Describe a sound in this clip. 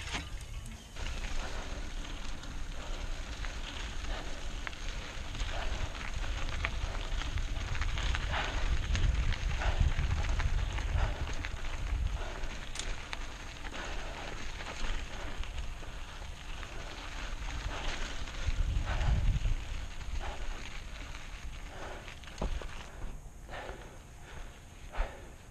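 Mountain bike tyres crunch and rattle over a dirt trail.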